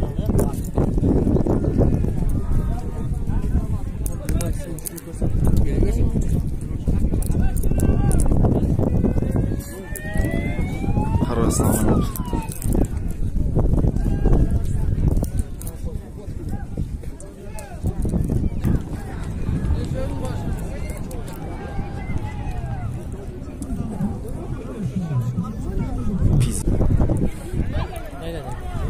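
Men talk nearby in a crowd.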